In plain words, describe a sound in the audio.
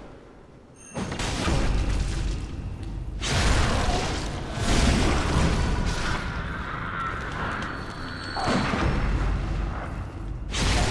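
A blade slashes and strikes with heavy, wet thuds during a fight.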